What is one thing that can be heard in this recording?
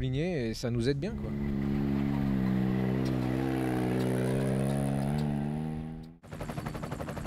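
A buggy engine drones as the vehicle drives off over dirt.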